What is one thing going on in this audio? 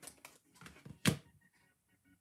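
A card taps down onto a table.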